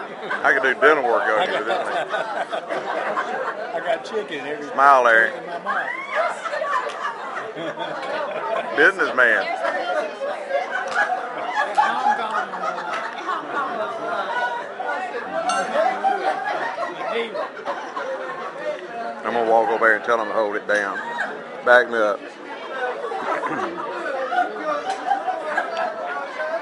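Many adults chatter and laugh in a crowded, echoing room.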